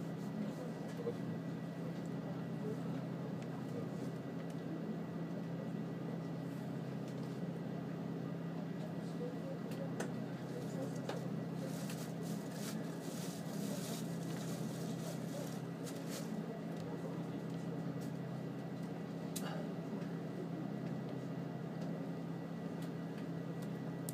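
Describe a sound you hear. A stationary train hums steadily and low.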